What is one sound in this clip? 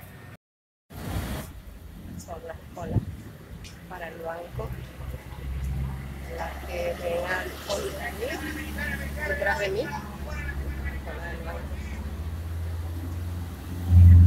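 A middle-aged woman speaks up close in a calm, serious voice.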